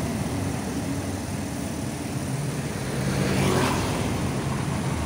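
A motorbike engine rumbles steadily nearby.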